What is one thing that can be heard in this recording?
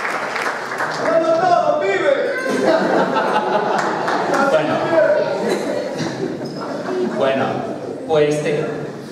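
A man speaks into a microphone through loudspeakers in an echoing hall.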